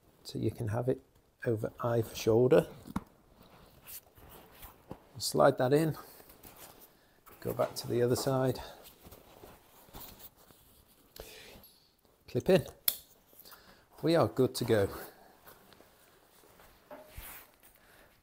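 Straps and buckles of a backpack click and rustle.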